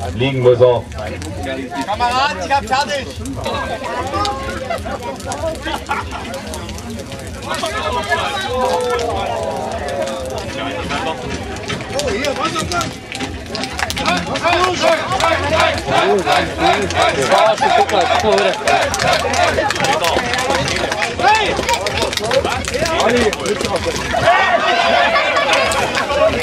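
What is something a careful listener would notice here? Several men talk and laugh close by, outdoors.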